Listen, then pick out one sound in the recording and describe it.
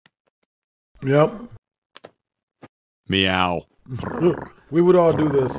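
A man speaks with animation close to a microphone.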